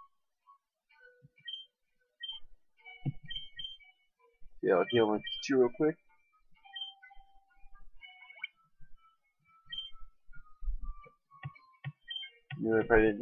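Short electronic beeps chirp from a video game.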